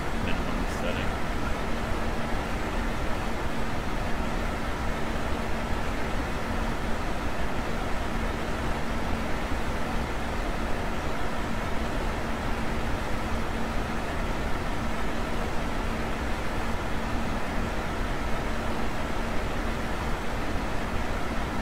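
Jet engines hum steadily with a low drone.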